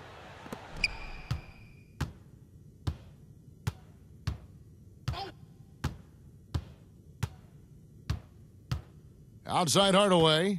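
A basketball bounces steadily on a hardwood court.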